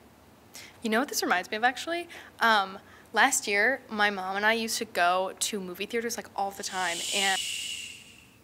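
A woman speaks with animation, close up.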